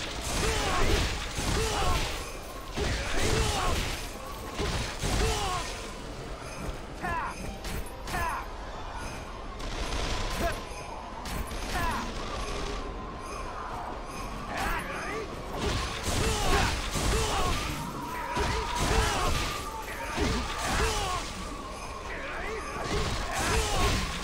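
Swords slash and clash in quick, rapid strikes.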